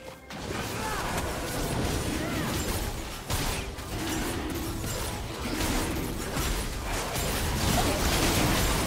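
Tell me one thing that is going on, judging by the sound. Game blows and hits clash in quick bursts.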